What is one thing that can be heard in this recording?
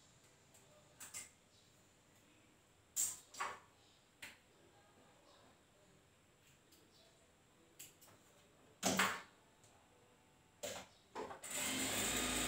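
Light knocks and clicks come from a sewing machine being handled.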